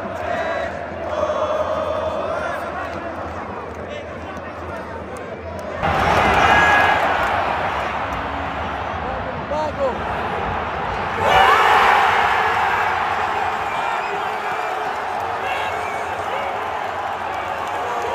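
A huge stadium crowd chants and sings loudly in a large echoing space.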